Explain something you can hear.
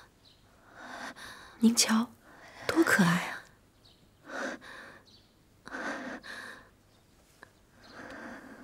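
A young woman speaks warmly and cheerfully, close by.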